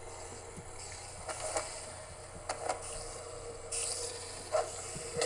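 Zombies groan.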